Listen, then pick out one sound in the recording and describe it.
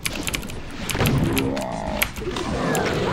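A monster growls and roars.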